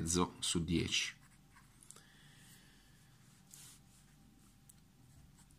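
A pen nib scratches softly on paper.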